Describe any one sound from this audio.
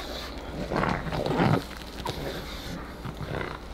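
A dog paws at plastic toys, which rattle and clatter on the floor.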